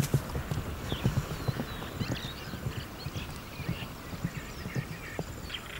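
An antelope's hooves thud as it runs on grass.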